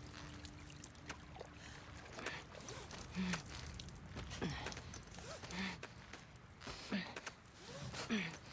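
A rope creaks as a person climbs it.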